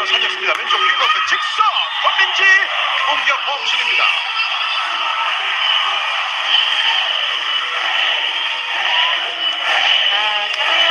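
A large crowd cheers and chants loudly in an echoing hall.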